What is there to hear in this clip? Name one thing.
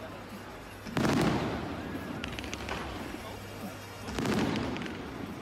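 Large fireworks boom loudly outdoors.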